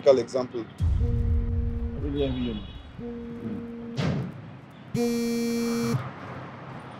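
A phone rings with repeated electronic beeps.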